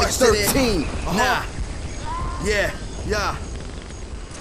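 A man raps loudly and rhythmically.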